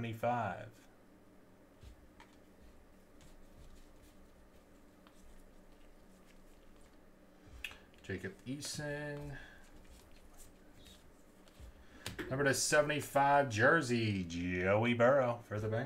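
Trading cards slide and shuffle against each other in gloved hands.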